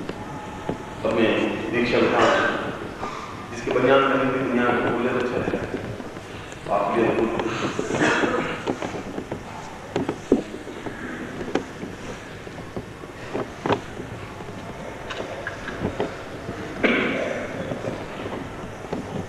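A man speaks with animation through a microphone and loudspeakers.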